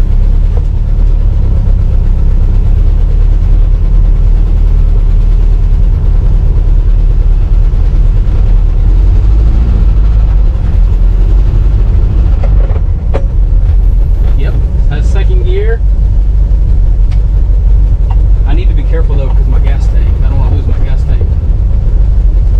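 A car engine rumbles and drones steadily from inside the car.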